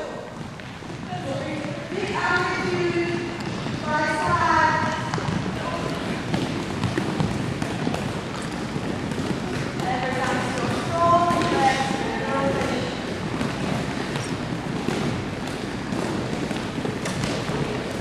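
Balls bounce on a wooden floor.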